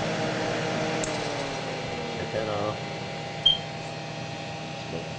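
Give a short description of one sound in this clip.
A disc drive motor winds down with a falling whine.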